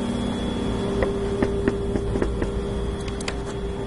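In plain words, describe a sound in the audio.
A metal door handle clicks and rattles.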